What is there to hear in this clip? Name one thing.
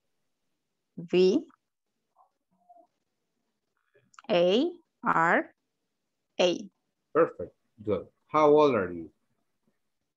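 A young woman answers briefly over an online call.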